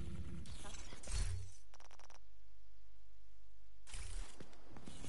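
Short menu clicks and chimes sound.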